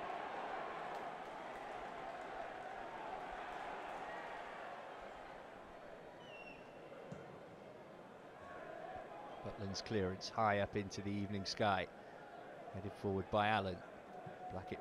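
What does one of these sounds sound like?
A large crowd murmurs and chants in a stadium.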